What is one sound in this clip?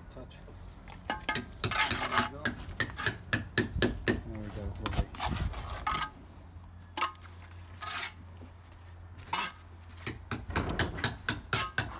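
A trowel scrapes and taps against bricks and mortar.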